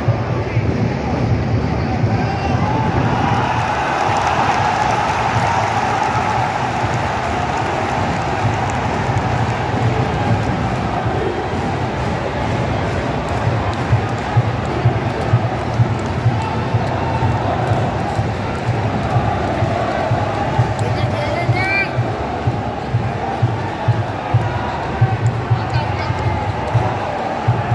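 A large crowd roars and chants steadily in a big open stadium.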